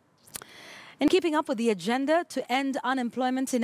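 A woman speaks clearly into a microphone, reading out the news.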